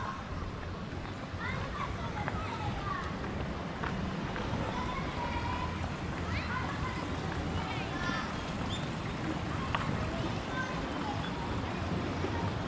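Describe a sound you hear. Water trickles softly in a shallow stream below.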